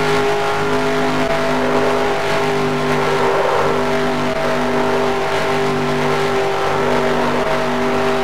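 Tyres screech through a long turn.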